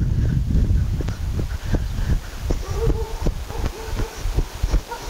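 A horse's hooves thud on soft ground as it trots close by.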